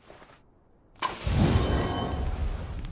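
A campfire flares up and crackles.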